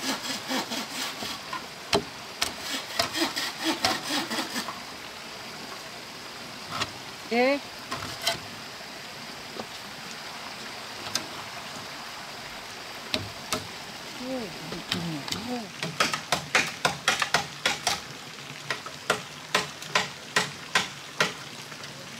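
Hollow bamboo knocks and clatters in quick bursts outdoors.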